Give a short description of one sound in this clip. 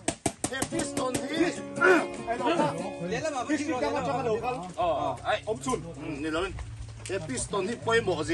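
A young man speaks into a microphone over a loudspeaker.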